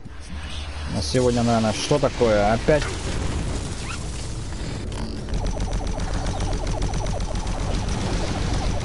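A monster snarls and roars.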